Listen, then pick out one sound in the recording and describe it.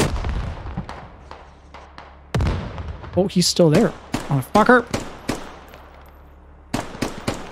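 A rifle fires loud shots that echo and fade.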